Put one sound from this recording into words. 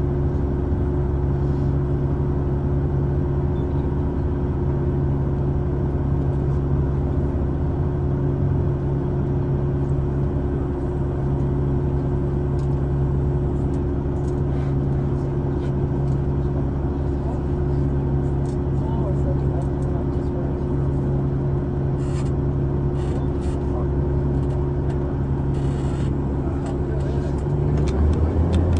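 A large diesel engine hums loudly and steadily.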